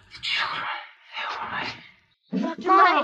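A woman speaks in a weak, breathy whisper close by.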